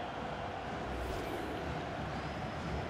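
A football is struck hard with a thump.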